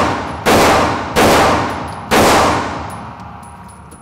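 Pistol shots ring out loudly in an echoing indoor range.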